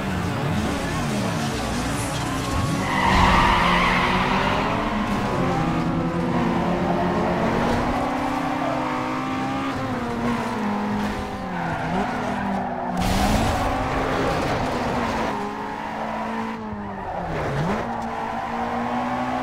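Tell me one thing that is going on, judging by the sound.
Racing car engines roar and rev, rising and falling in pitch.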